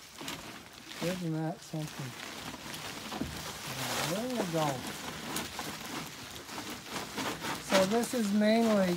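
A woman talks and laughs nearby.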